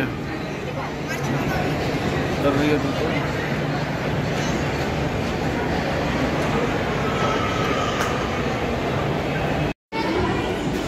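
An escalator hums and rumbles steadily in a busy, echoing hall.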